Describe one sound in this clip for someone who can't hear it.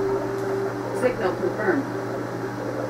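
A short electronic sweep sounds from a television speaker.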